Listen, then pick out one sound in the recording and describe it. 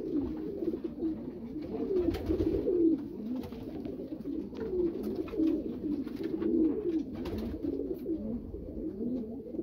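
A pigeon coos softly and steadily, close by.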